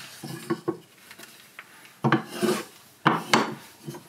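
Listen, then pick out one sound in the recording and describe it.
A piece of wood knocks on a wooden block.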